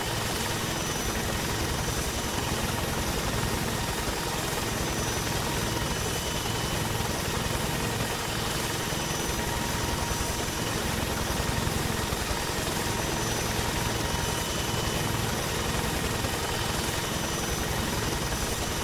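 A helicopter's rotor thumps steadily and loudly overhead.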